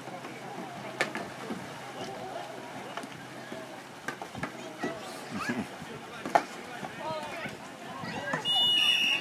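Players splash in the water.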